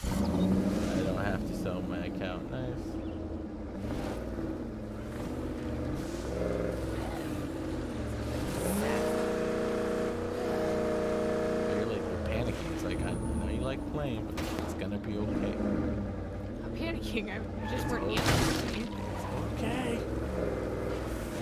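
A truck engine revs and roars as it drives.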